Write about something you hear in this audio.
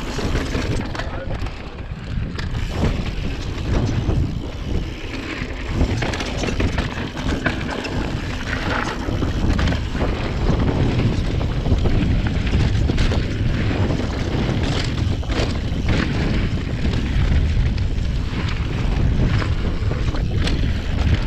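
Wind buffets loudly, as outdoors at speed.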